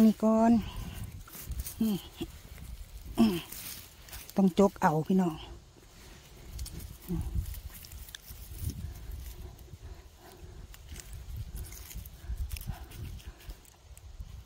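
A hand rustles through dry grass and leaves.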